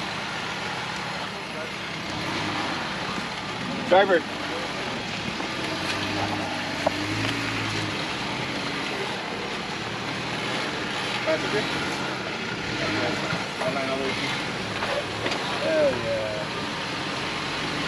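An engine idles and revs low as an off-road vehicle crawls over rocks.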